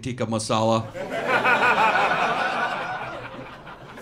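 An audience laughs loudly and the laughter slowly fades.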